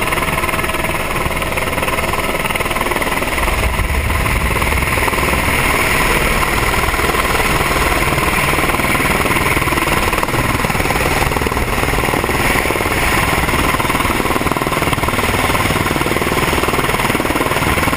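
A helicopter engine roars and its rotor thumps loudly nearby.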